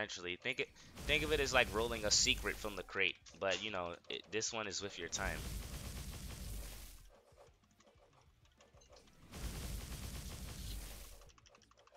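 Magic attacks whoosh and crackle in bursts.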